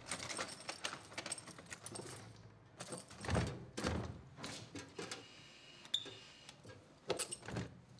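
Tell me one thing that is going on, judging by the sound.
Keys rattle and click in a door lock.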